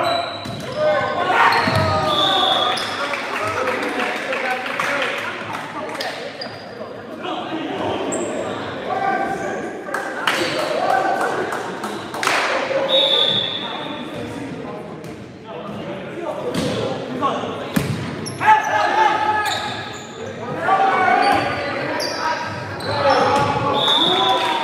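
Spectators and players shout and cheer.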